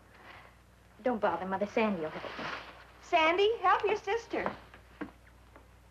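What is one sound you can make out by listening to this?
A middle-aged woman speaks with feeling, close by.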